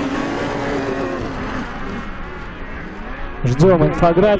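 Snowmobile engines roar and whine.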